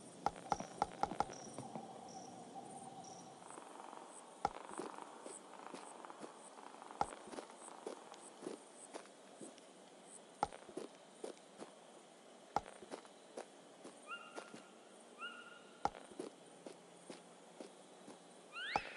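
Footsteps tread softly on the ground.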